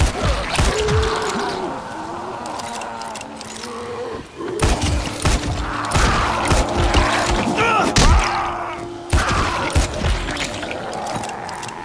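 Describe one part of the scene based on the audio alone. Revolver shots bang one at a time.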